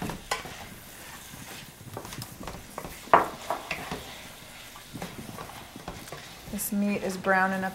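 Knives chop vegetables on a cutting board.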